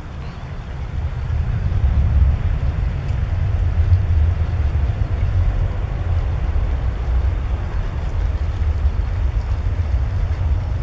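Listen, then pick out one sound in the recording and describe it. A jet airliner's engines roar loudly as it speeds away down the runway.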